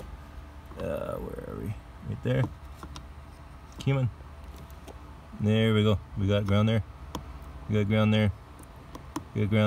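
A screwdriver clicks and scrapes against a plastic connector.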